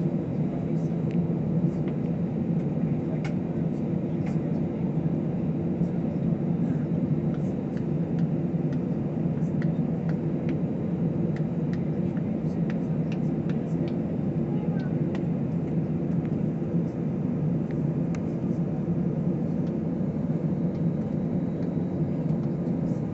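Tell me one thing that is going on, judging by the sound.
Jet engines of an airliner rumble steadily, heard from inside the cabin as the plane taxis.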